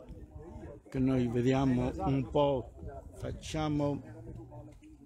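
A man talks loudly and animatedly.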